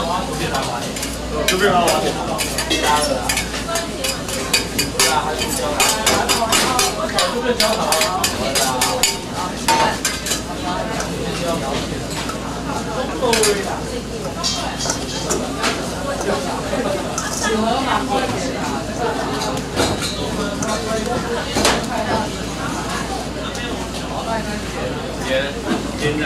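A spoon clinks and scrapes against a metal bowl.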